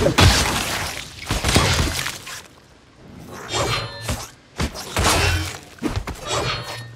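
Swords clash and magic bursts crackle in a fast fight.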